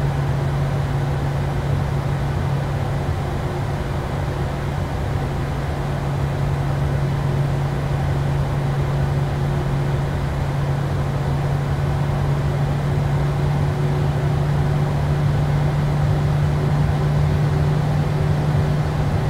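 A jet engine hums steadily and loudly as an airliner taxis.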